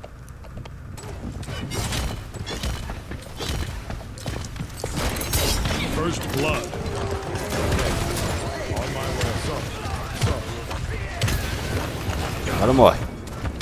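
Game weapons fire and clash with loud bursts.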